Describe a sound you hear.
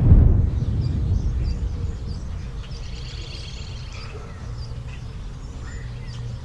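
Wind rumbles low outdoors, strongest at first and then easing.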